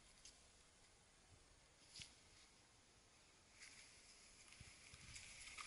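A rope rubs and scrapes against tree bark.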